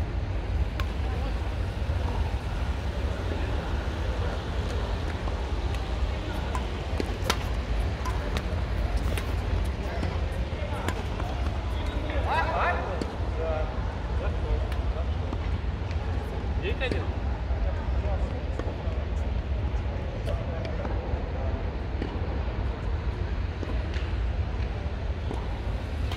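Shuttlecocks are struck with rackets with sharp pops in a large echoing hall.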